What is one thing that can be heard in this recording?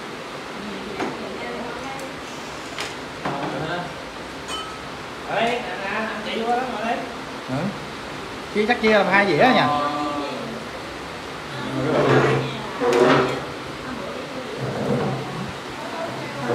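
Dishes and utensils clink on a table.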